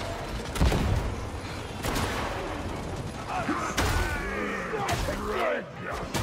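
Gunshots bang in short bursts.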